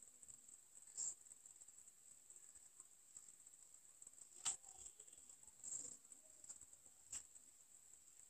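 A crochet hook softly clicks and rustles against thread and beads.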